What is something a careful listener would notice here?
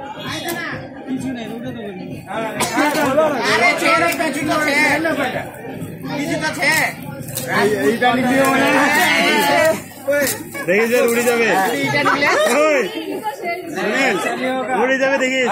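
Several women talk and chatter close by.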